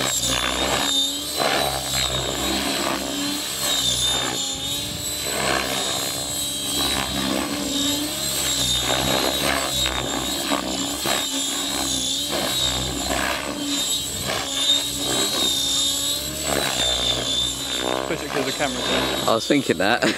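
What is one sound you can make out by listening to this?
A model helicopter whines and buzzes overhead.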